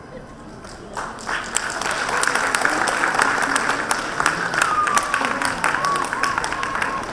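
An audience claps and cheers in a large hall.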